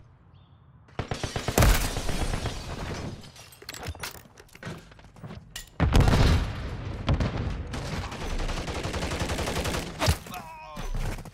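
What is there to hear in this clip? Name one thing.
An automatic rifle fires in bursts in a video game.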